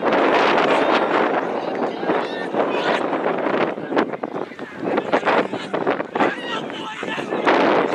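Young men shout and cheer in celebration at a distance.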